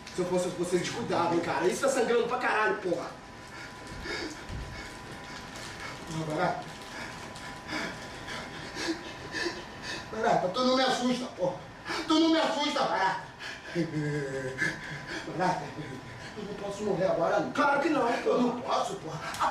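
A second man answers loudly, with animation.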